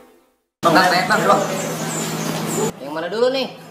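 Young men speak loudly and with animation close by.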